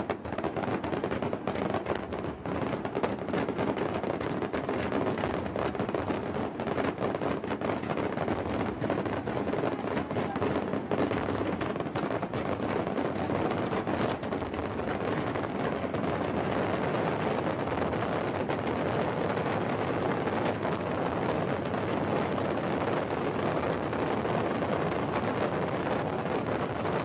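Fireworks boom and crackle in rapid bursts outdoors.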